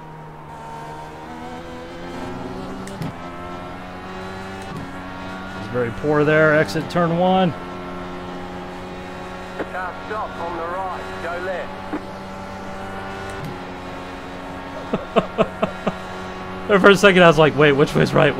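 A racing car engine drones steadily at high speed.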